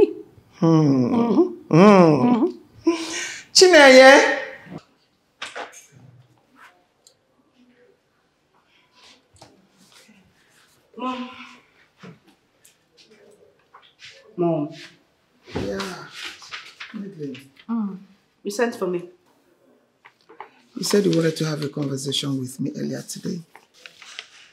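A middle-aged woman speaks with animation nearby.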